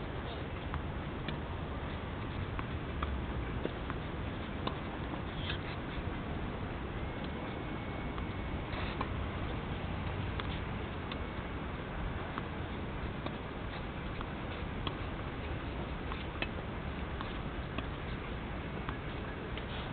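A tennis racket strikes a ball outdoors, with sharp pops now and then.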